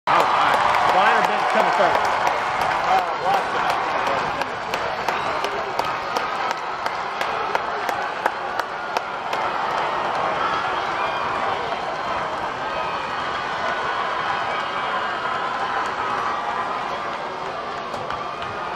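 Young women cheerleaders shout and chant with excitement.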